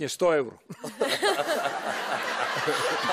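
A young woman laughs loudly.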